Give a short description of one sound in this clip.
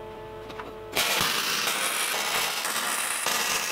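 An arc welder crackles and hisses steadily.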